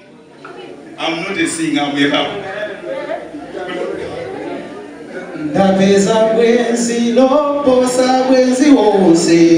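A young man sings through a microphone with animation.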